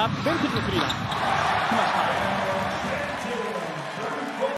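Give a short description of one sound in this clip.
A crowd roars loudly after a score.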